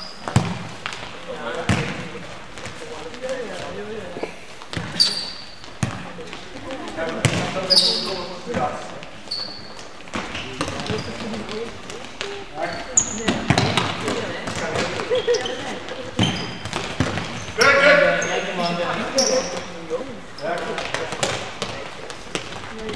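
A ball is kicked with sharp thuds in an echoing hall.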